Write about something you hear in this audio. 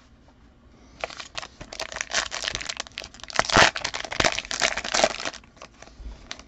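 A plastic wrapper crinkles and tears.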